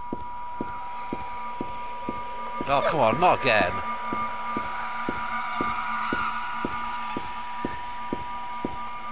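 Footsteps tap at a walking pace on a hard floor.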